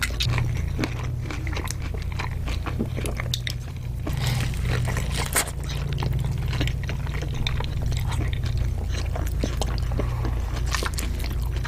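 A woman chews food wetly and loudly, close to a microphone.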